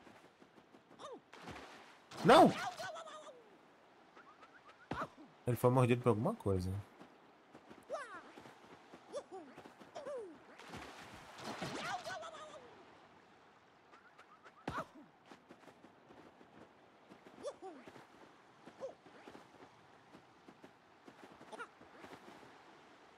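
Short cartoonish sound effects chirp and bounce now and then.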